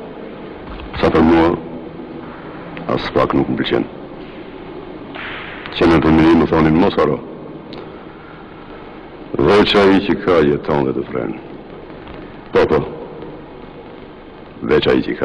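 A middle-aged man speaks in short, tense phrases with pauses between them.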